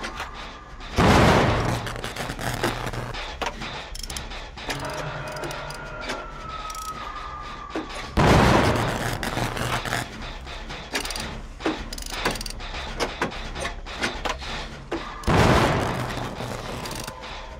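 A generator engine clanks and sputters loudly in short bursts.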